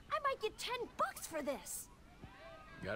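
A young man speaks with excitement.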